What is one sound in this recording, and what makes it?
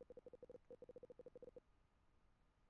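Rapid electronic game blips chatter in quick bursts.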